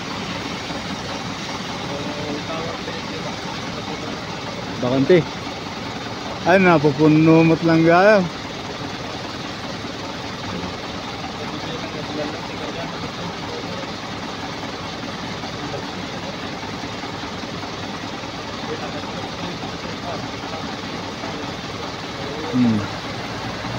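Truck engines idle steadily nearby.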